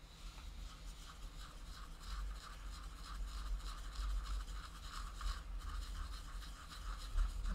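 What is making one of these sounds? A brush scrapes and dabs inside a small cup.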